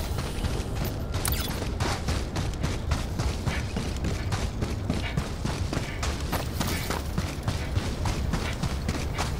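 Heavy footsteps tramp quickly over rough ground.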